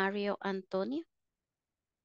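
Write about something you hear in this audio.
A woman speaks briefly over an online call.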